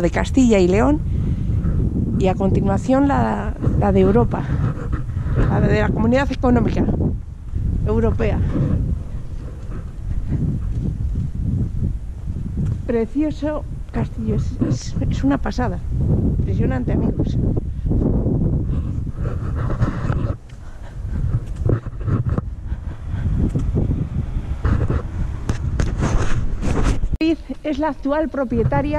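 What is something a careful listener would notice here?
A woman talks close to the microphone.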